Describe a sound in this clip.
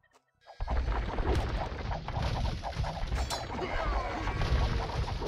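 Swords clash and soldiers fight in a noisy battle.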